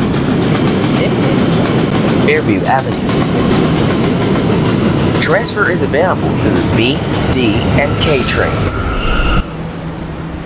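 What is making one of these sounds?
Brakes squeal as a train slows to a stop.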